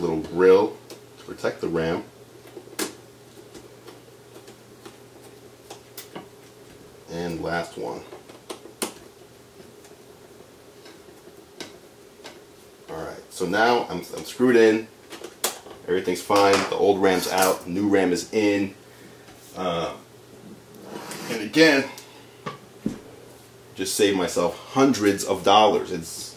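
A man talks casually and close by.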